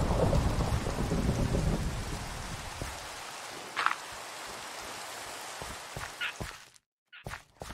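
Blocks break with soft crunching thuds, one after another.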